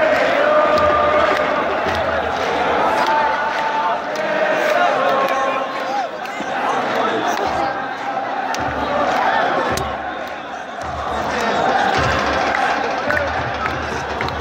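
A large crowd of football supporters chants and shouts in an open stadium.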